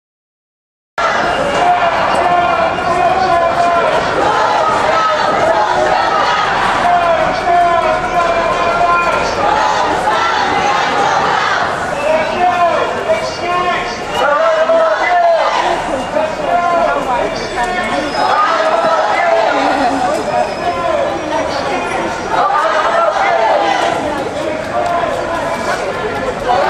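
A crowd of marching protesters chants together loudly outdoors.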